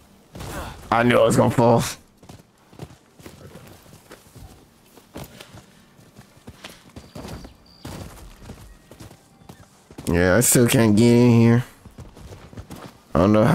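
A horse's hooves thud along at a gallop.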